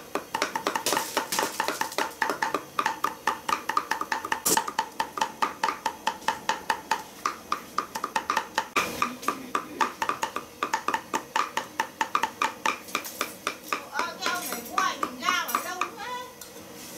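A cleaver chops rapidly on a wooden board.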